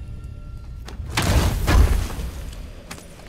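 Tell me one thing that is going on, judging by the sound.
A heavy chest lid creaks open.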